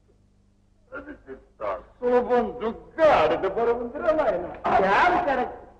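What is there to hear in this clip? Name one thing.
A middle-aged woman talks loudly with animation.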